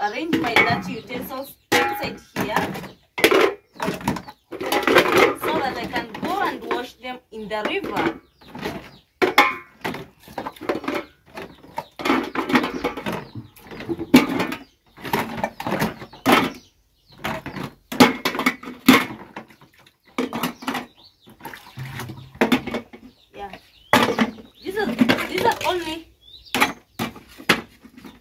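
Metal pots and dishes clink and clatter.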